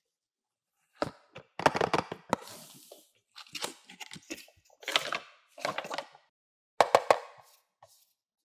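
Cardboard packaging rustles and scrapes as hands open a box.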